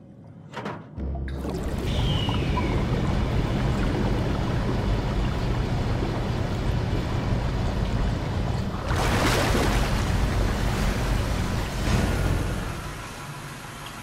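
Water rushes in with a loud, steady roar and bubbling.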